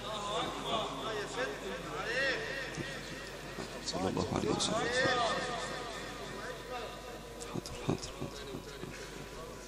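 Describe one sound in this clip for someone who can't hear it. A crowd of men talks and murmurs all around, close by.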